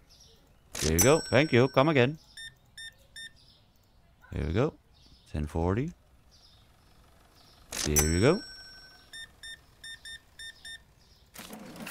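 A card payment terminal beeps in short, quick electronic tones.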